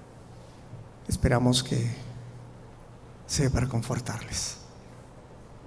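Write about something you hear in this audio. A man speaks loudly into a microphone in a large echoing hall.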